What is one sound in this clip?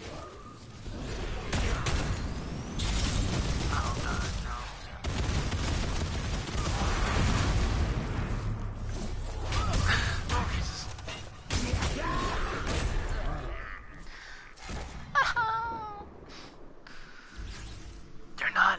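Gunfire and energy blasts crackle rapidly.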